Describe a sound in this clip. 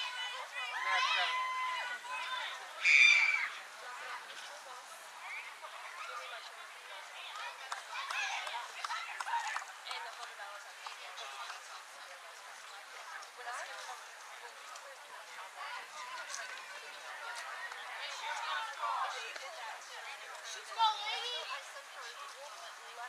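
Young girls shout and cheer in the distance outdoors.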